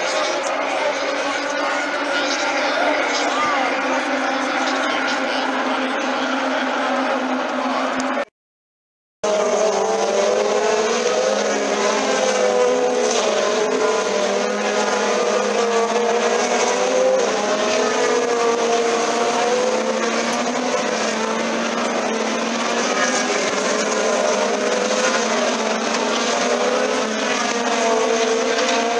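Racing car engines roar and whine loudly as cars speed past.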